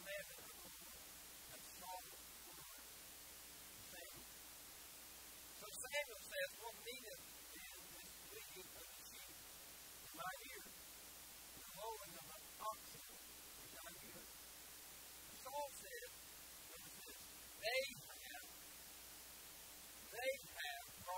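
A man preaches through a microphone, speaking in short bursts with pauses.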